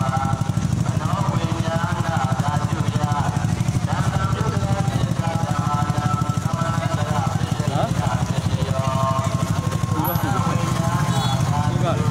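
A crowd of men and women talk and call out outdoors.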